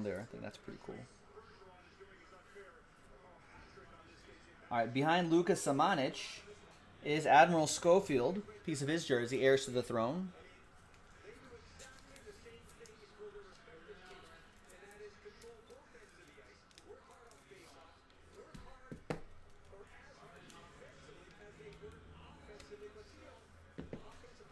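Card wrappers rustle and tear as packs are opened.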